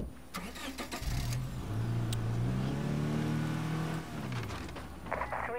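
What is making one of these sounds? A car engine starts and revs, rising then falling.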